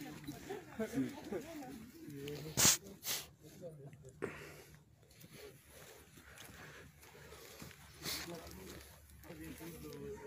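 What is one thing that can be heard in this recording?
Young people talk casually close by.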